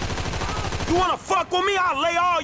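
A man shouts with strain, close by.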